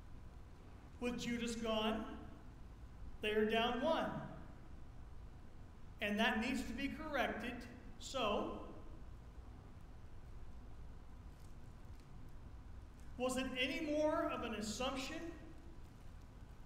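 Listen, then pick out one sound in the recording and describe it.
An elderly man speaks slowly and calmly through a microphone in an echoing hall, with long pauses.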